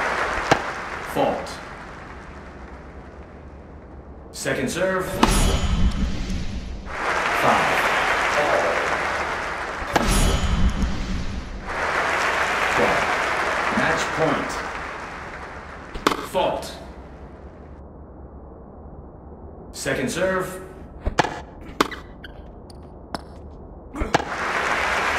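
A tennis ball is struck with a racket, with sharp pops.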